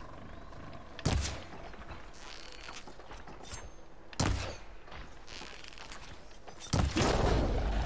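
An arrow is loosed from a bow with a sharp snap.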